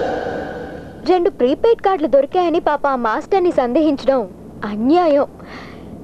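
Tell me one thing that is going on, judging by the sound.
A woman speaks with animation, close by.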